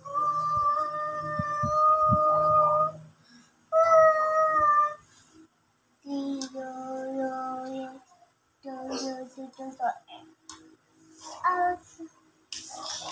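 A young child sings and babbles nearby.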